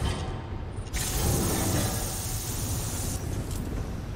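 An energy weapon fires with a loud crackling hiss.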